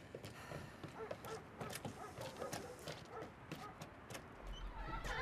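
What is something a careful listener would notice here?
Footsteps creak and tap across a wooden floor.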